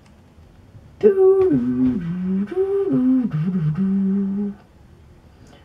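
A short ocarina tune plays from a small game speaker.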